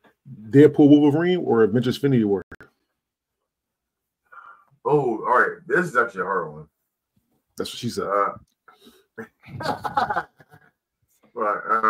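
Several adult men talk with animation over an online call.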